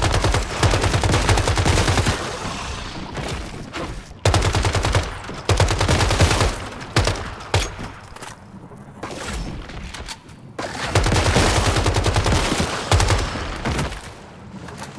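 An automatic rifle fires rapid bursts of gunshots.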